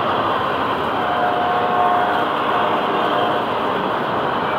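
Train wheels squeal against the rails.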